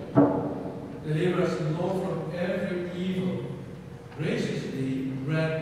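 A man chants slowly through a microphone, echoing through a big hall.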